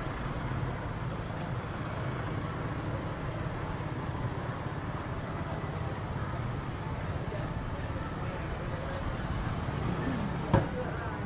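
Steady traffic hums along a street outdoors.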